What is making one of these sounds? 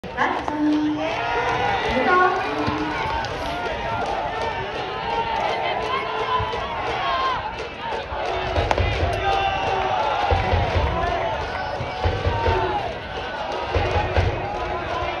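Young men shout and call out across an open ball field.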